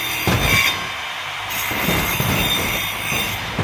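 A car crashes and scrapes against metal with loud bangs.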